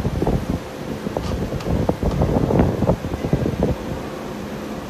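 A machine clatters and thumps briefly.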